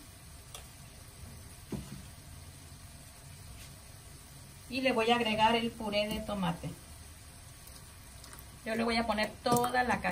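Food simmers softly in a pot.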